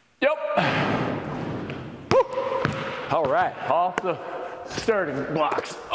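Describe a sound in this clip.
A basketball clangs off a hoop's rim.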